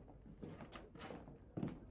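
Footsteps tap on a stone lane.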